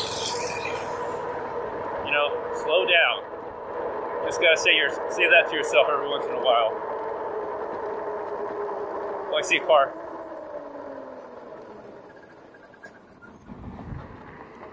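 An electric motor whines steadily as a scooter rolls along.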